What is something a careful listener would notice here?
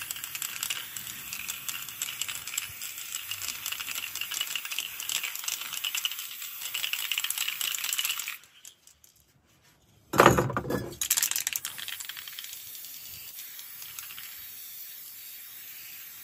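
A spray paint can hisses in steady bursts.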